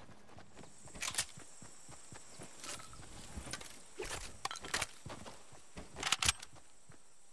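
Short clicks and chimes sound as items are picked up.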